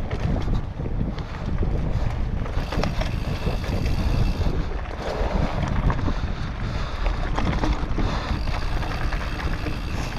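Bike tyres roll and crunch over a rough dirt trail.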